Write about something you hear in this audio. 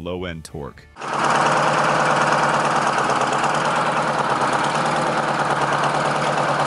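A tractor engine runs with a loud, steady roar.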